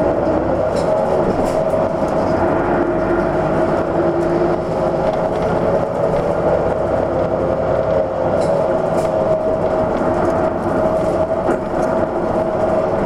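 A vehicle engine hums steadily as it drives along a road.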